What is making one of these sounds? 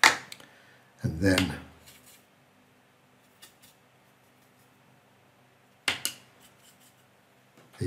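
A paintbrush dabs and scrubs paint in a palette.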